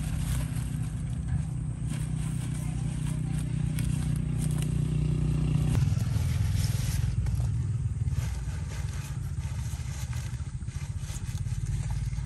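Leafy vegetables rustle as they are picked and dropped into a basket.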